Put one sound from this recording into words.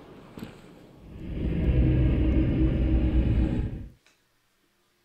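A deep magical whoosh swells into a loud, steady roar and then cuts off abruptly.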